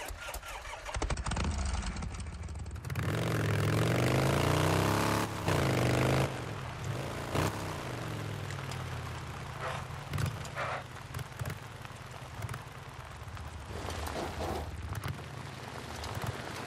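A motorcycle engine revs and accelerates as the motorcycle rides off.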